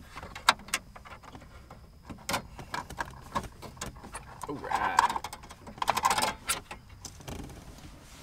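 Plastic parts click and rattle as hands pry out a car stereo.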